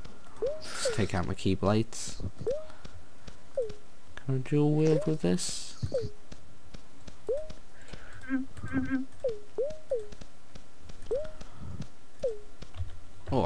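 Short electronic blips sound again and again as items are moved in a game menu.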